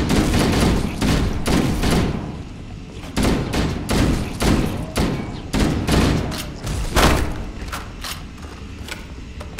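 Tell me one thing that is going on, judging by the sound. A rifle fires loud, rapid bursts of gunshots.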